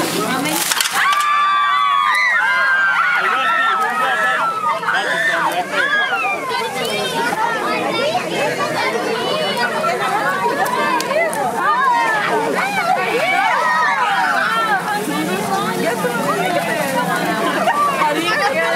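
Children squeal and shriek with excitement.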